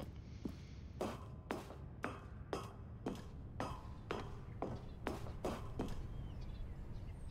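Footsteps clang on a metal walkway at a steady pace.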